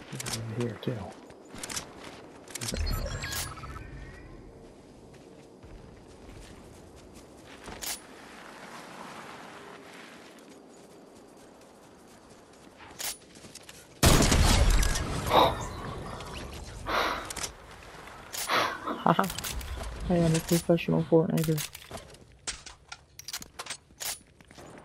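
Footsteps patter quickly over grass and gravel.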